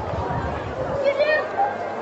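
A group of children chant together outdoors.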